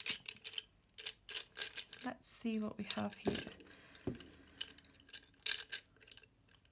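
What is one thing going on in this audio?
Wooden pencils clatter and click against each other as a hand sorts through them.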